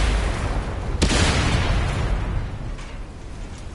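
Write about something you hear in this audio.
A second blast booms and fades.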